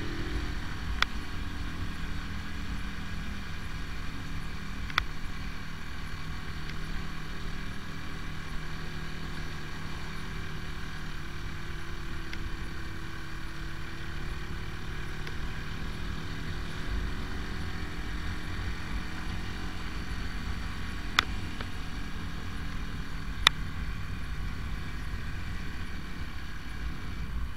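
A motorcycle engine hums steadily as it rides along.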